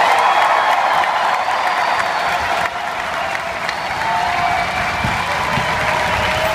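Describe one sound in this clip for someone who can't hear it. An orchestra plays in a large, echoing hall.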